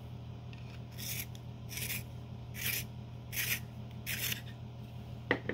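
A pencil grinds in a hand sharpener in short bursts.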